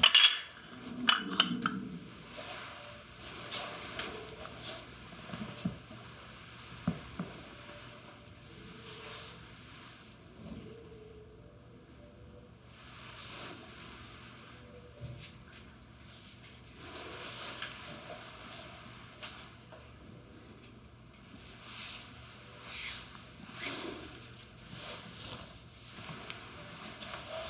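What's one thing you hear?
Hands rub and knead skin with soft, swishing strokes close by.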